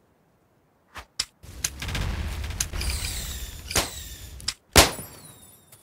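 A blaster gun fires in short sharp zaps.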